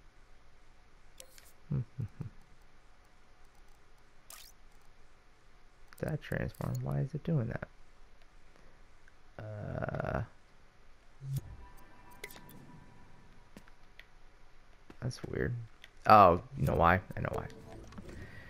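Soft electronic chimes sound as menus pop open.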